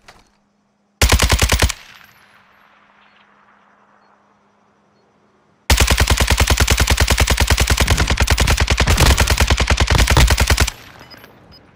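An automatic rifle fires rapid bursts of loud shots.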